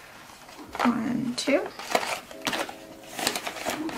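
Paper bills rustle as they are counted.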